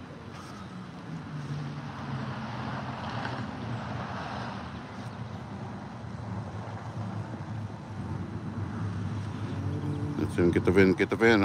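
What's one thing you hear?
A car engine hums as the car drives slowly past.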